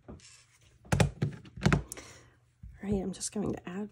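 A plastic case clicks open.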